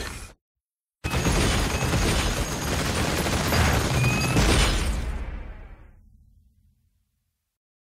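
Explosions rumble loudly and fade.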